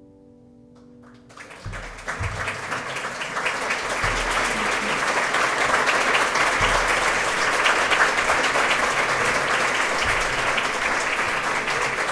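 A string ensemble with a cello plays.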